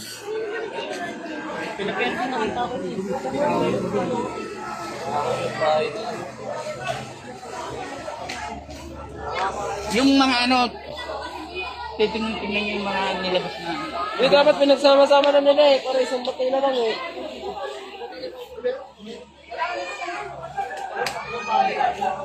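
A crowd of men and women talk and shout excitedly outdoors.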